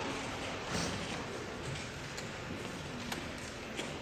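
A young woman's footsteps tap on a hard floor.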